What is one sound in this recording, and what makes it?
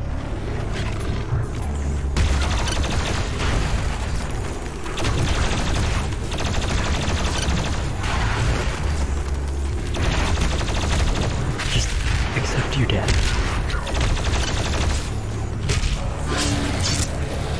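Monsters roar and growl.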